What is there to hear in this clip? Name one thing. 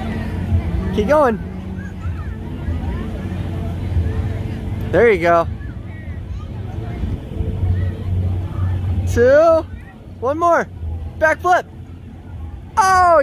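A child squeals with excitement.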